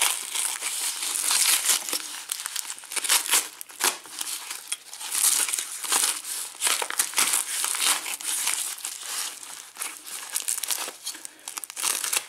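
A utility knife cuts open plastic packaging.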